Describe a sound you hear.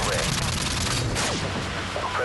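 Gunfire and explosions crackle loudly from a video game.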